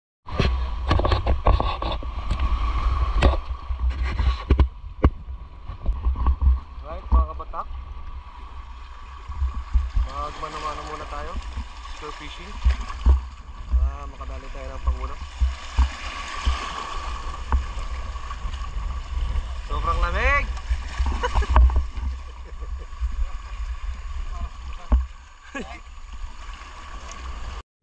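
Shallow water splashes around rocks.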